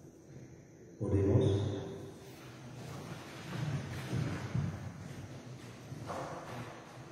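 A man speaks calmly into a microphone, heard in an echoing hall.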